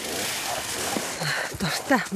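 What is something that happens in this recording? A young woman speaks cheerfully outdoors.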